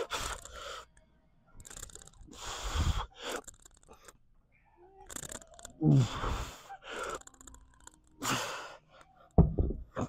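A man exhales forcefully in short bursts.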